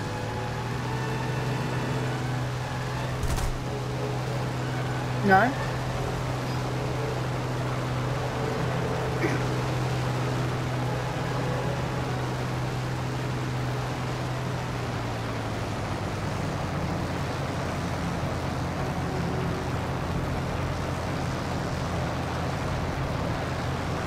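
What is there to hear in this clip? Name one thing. Wind rushes past an aircraft in flight.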